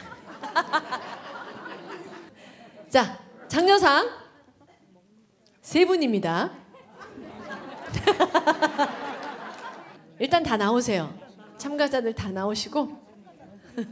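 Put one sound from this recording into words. A woman speaks brightly through a microphone in a large hall.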